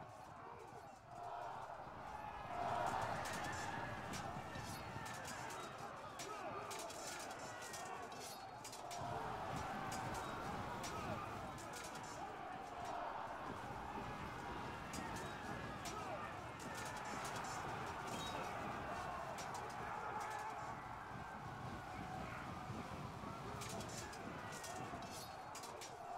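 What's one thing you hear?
A large crowd of soldiers shouts and yells in battle.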